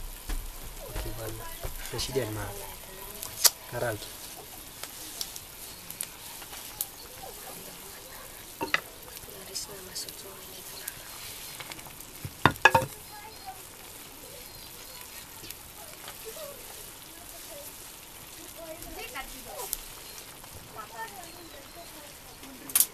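Water simmers and bubbles in a pan.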